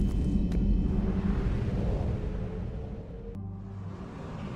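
A spaceship rushes past with a rising whoosh.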